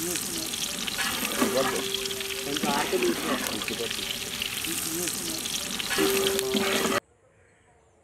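A ladle stirs and swishes through water in a metal pot.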